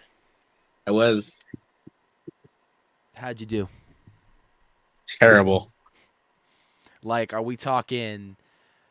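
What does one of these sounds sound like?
A man speaks in short phrases through a microphone over an online call.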